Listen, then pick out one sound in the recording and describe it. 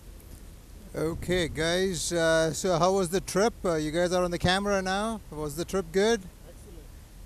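A man talks casually close by, outdoors.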